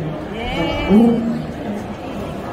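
A small child blows into a tuba.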